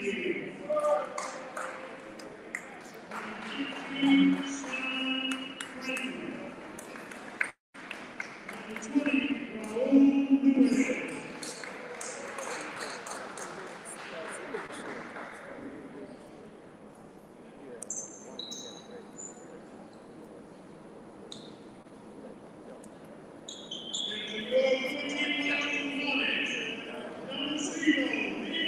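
Young men talk and shout in a huddle in a large echoing gym.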